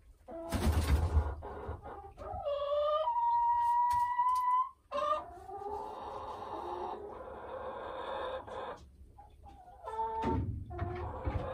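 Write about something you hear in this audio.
A hen clucks and croons loudly close by.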